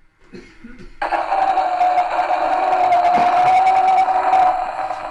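A wind-up gramophone plays a scratchy old record through its horn.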